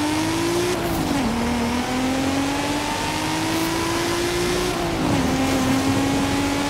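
A car engine revs hard, dropping in pitch at each gear shift.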